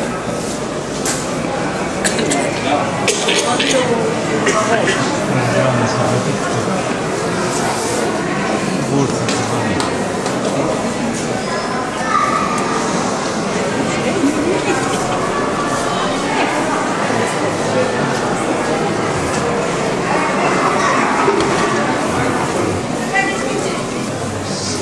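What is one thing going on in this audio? A dense crowd murmurs and chatters in a large echoing hall.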